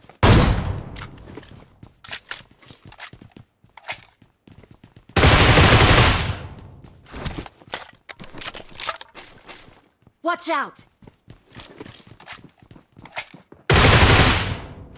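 Gunshots boom loudly in quick bursts.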